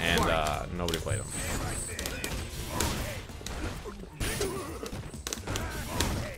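Punches and kicks thud and smack.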